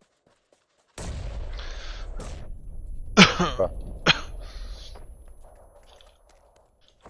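A smoke grenade bursts and hisses loudly.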